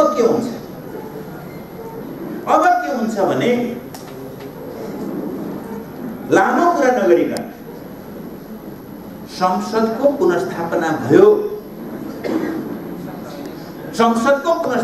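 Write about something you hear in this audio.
A middle-aged man speaks forcefully into a microphone, in bursts with pauses.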